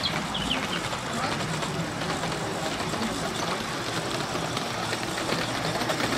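A small model train rumbles softly along its track.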